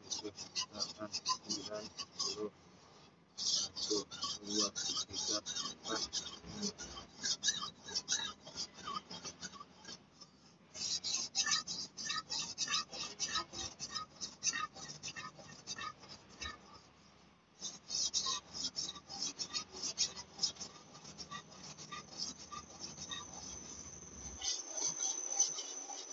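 A machete blade scrapes in rapid strokes across a wet whetstone.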